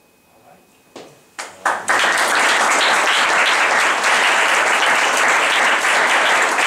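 A small audience applauds in a room.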